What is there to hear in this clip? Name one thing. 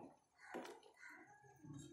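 A spoon scrapes and stirs in a pot.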